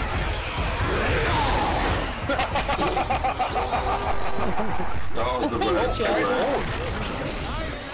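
Blows thud as a fighter shoves back attackers.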